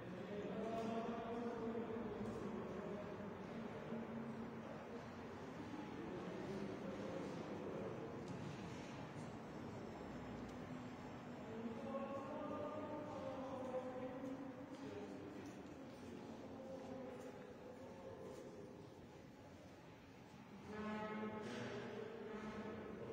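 A group of voices sings together, echoing in a large hall.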